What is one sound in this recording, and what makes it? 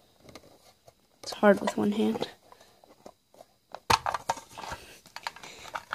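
A metal tin clicks and clatters as its lid is handled.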